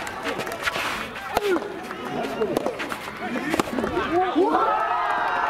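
Players shout out during the rally.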